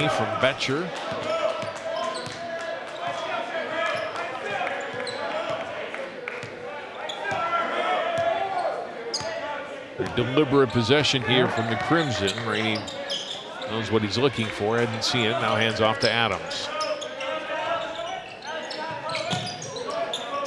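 Sneakers squeak sharply on a hardwood floor.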